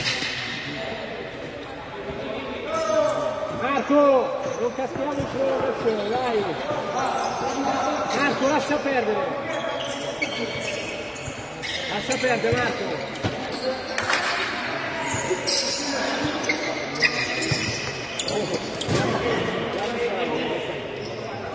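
Spectators nearby chatter and call out in a large echoing hall.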